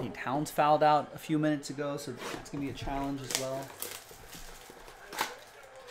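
Cardboard packaging rustles and taps as it is handled.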